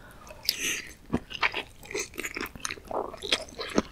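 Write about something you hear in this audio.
A woman bites into soft, spongy food.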